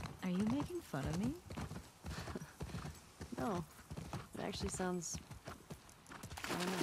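A horse's hooves clop at a walk.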